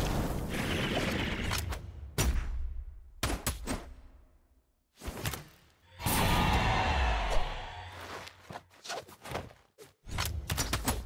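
Swift whooshing swings cut through the air.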